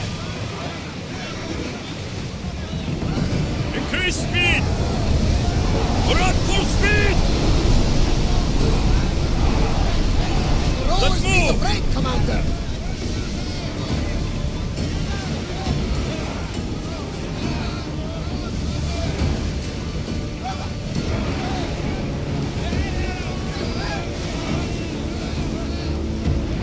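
A crowd of men sing together in chorus.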